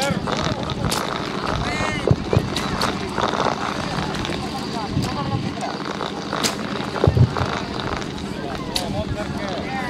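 Arrows are released from recurve bows with sharp snaps.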